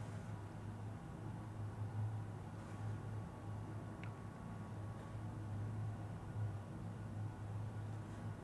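Motor oil glugs softly as it pours from a jug into a funnel.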